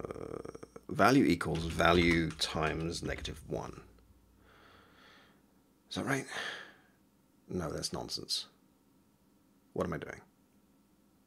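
A man speaks calmly and in short bursts, close to a microphone.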